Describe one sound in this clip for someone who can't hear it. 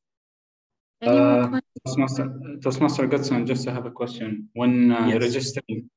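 A man speaks steadily through an online call.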